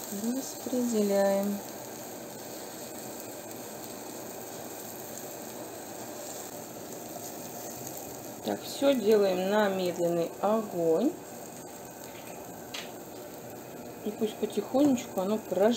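A metal spoon scrapes and spreads batter in a pan.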